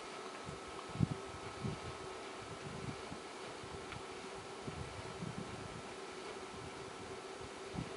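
Wooden ladder rungs creak and knock during a climb.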